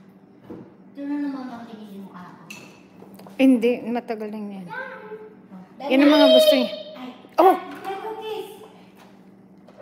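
A young girl talks with animation nearby.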